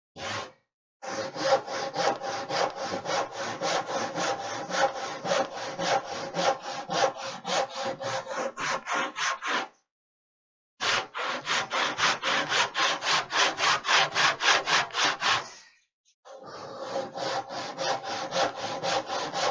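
A hand saw cuts through wood with quick, rhythmic strokes.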